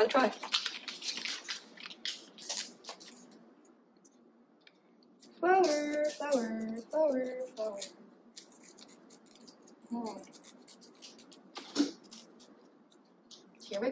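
Paper and plastic crinkle and rustle as they are handled.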